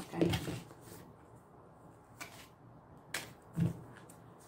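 Playing cards shuffle and flick softly in hands.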